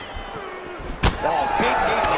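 A punch lands with a sharp thud.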